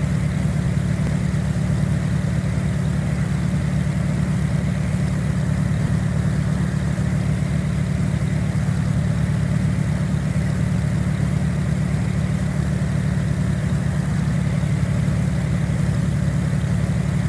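A propeller engine drones steadily and loudly.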